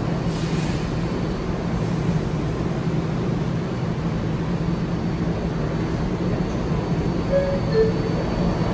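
A subway train rumbles steadily through a tunnel with a deep, droning roar.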